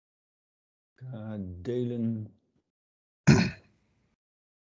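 A man speaks briefly over an online call.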